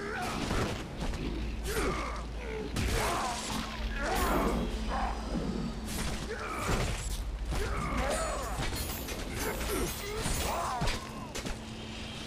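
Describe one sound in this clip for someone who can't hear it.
Blades slash and clang in a fast fight.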